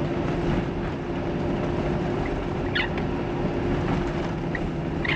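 A windscreen wiper sweeps across the glass.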